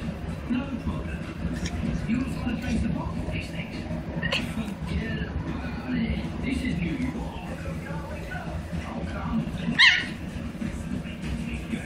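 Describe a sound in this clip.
Two small dogs growl and snarl as they play-fight up close.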